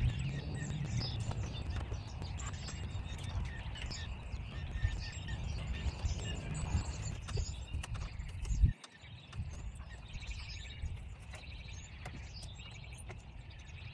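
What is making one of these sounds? Small tools click and tap against a window frame.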